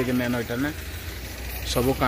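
A diesel engine idles with a low rumble nearby.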